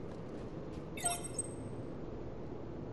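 A bright electronic alert chime rings out once.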